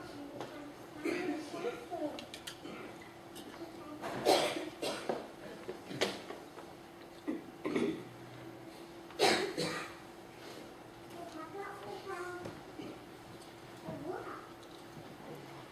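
A man speaks quietly at a distance in a large room.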